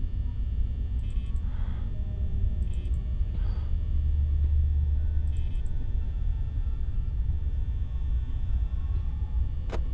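A desk fan hums with a steady low drone.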